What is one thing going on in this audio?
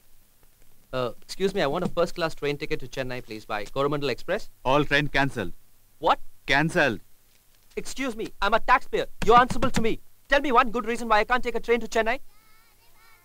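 A young man speaks up angrily, close by.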